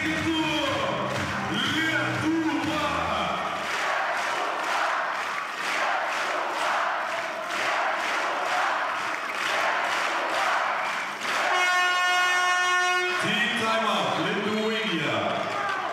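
A handball bounces on a hard court floor.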